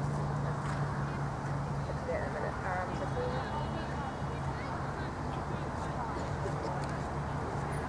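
A horse's hooves thud softly on grass.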